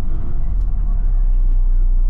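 A car drives toward the listener along the road and passes by.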